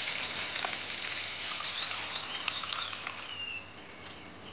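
Liquid pours into a pot.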